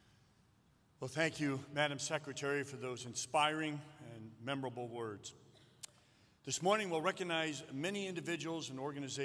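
A middle-aged man speaks firmly into a microphone, heard through loudspeakers.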